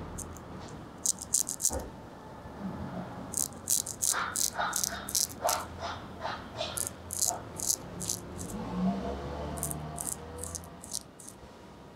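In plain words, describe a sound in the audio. A straight razor swishes in quick strokes along a leather strop.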